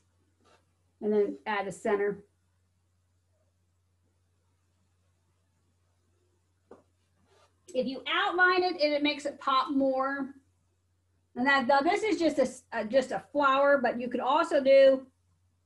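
A middle-aged woman talks calmly and close by, with pauses.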